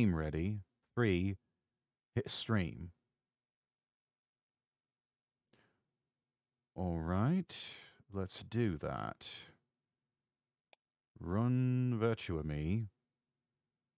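A young man speaks with animation into a microphone, in short bursts with pauses.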